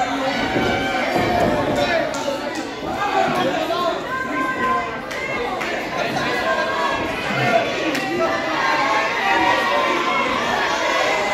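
A crowd chatters and cheers loudly around the listener in a large echoing hall.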